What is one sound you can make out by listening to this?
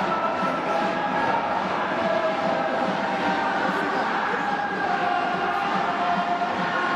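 Drums beat a steady rhythm.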